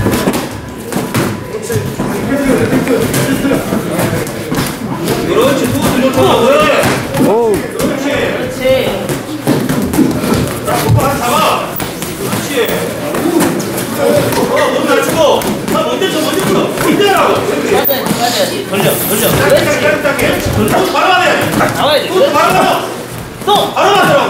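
Boxing gloves thud against pads and bodies in quick bursts.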